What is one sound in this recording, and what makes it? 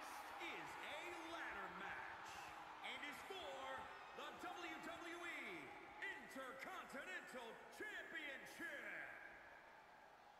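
A man speaks through a microphone to the arena crowd.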